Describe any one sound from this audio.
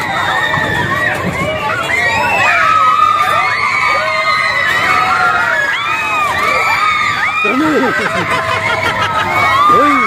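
Children squeal and shout excitedly nearby.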